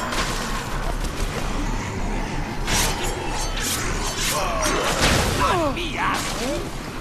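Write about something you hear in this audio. Heavy blows thud as a fighter strikes attackers.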